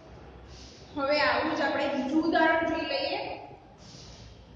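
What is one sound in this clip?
A young woman speaks clearly, close by.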